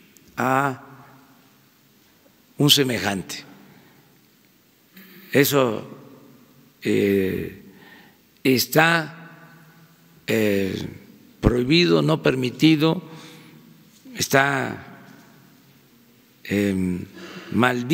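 An elderly man speaks slowly and deliberately into a microphone, with pauses between phrases, in a large room with some echo.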